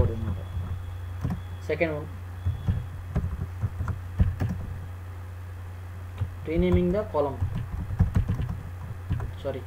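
Keys clatter on a computer keyboard in quick bursts.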